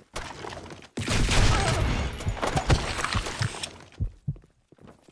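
Rapid gunshots ring out loudly.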